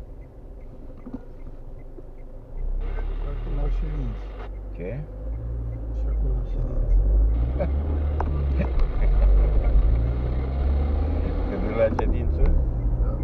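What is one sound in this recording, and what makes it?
A car engine hums from inside as the car pulls away and speeds up.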